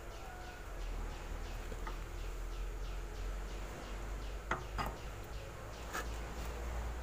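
Metal gears clink softly as they are turned by hand.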